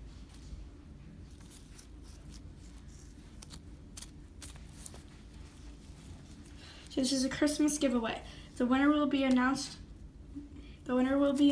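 Soft slime squelches and crackles as hands squeeze and stretch it.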